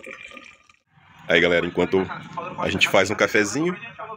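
A man talks with animation through a television speaker.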